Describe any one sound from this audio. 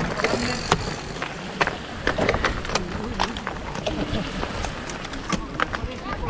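Bicycle tyres crunch and rattle over loose gravel.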